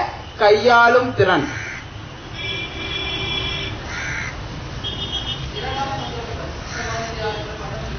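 A man speaks into a microphone in a steady, lecturing voice.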